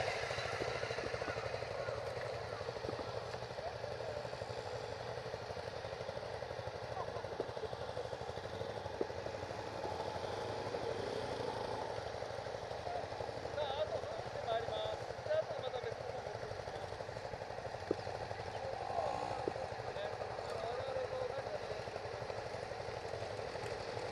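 Distant dirt bike engines buzz across the track.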